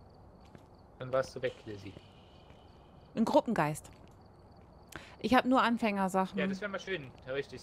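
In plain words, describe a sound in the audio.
A woman speaks casually into a microphone.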